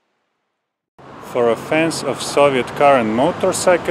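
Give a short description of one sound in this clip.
A man speaks close to the microphone, calmly and directly.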